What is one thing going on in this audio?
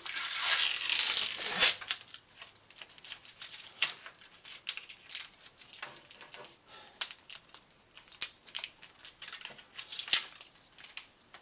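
Rubber mould material crinkles and rustles as hands peel it from a sculpture.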